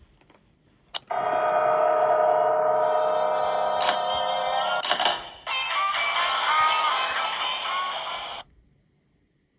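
Music plays from a tablet's speaker.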